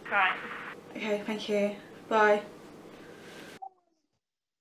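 A young woman speaks close by with some emotion.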